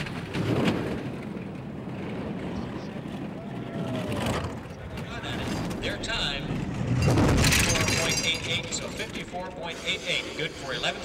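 A bobsled roars along an icy track in loud rushing bursts.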